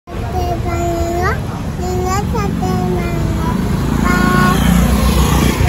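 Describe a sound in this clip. A young child talks in a high, lively voice close by.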